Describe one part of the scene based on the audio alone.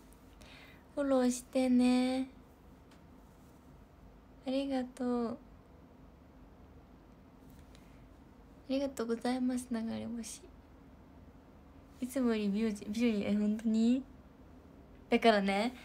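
A young woman speaks softly and close to a microphone, in short bursts with pauses.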